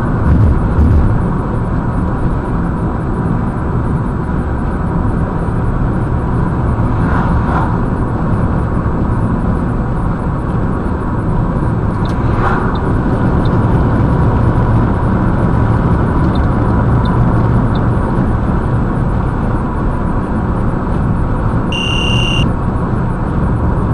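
A car engine hums steadily with road noise from inside a moving car.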